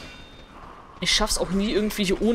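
A sword swings and strikes with a sharp clang.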